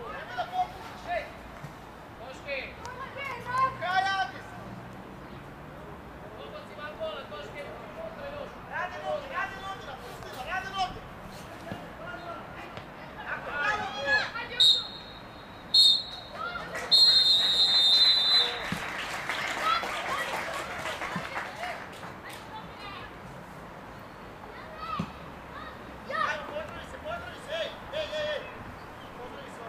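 Children and young men shout across an open field.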